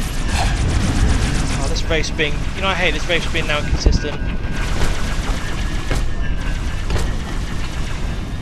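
A plasma rifle fires in rapid bursts.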